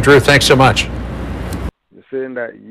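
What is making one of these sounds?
A man speaks clearly into a microphone, like a news presenter.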